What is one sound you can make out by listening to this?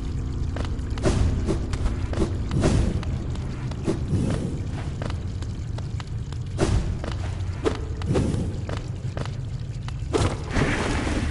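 Sharp whooshing dashes burst out now and then.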